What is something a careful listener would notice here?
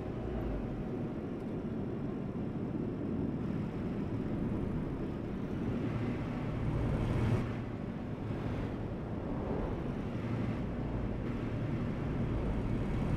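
A truck engine hums steadily with a low drone.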